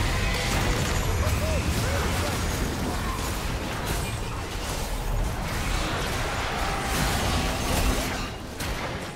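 Spell blasts, whooshes and impacts of a video game battle crackle and boom.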